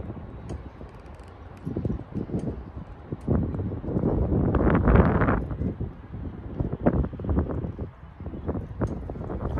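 Wind gusts and buffets outdoors by open water.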